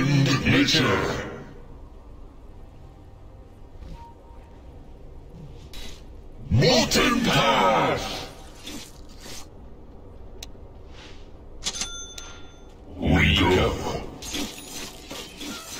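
Game spell effects whoosh and crackle in short bursts.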